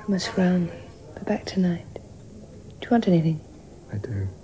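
A woman speaks softly and gently up close.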